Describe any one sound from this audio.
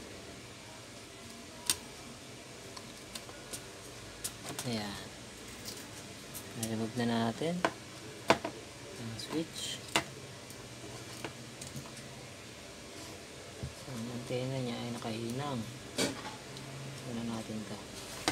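Small plastic parts click and tap as a circuit board is handled.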